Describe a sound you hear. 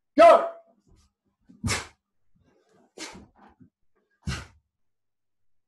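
A man lets out sharp, short shouts as he strikes.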